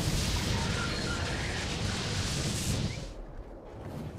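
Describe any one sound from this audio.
Wind rushes loudly past a large flying creature, then suddenly drops away.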